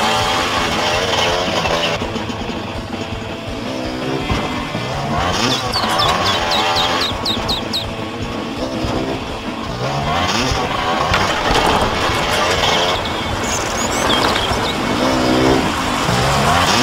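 A motorbike engine revs up and down in quick bursts.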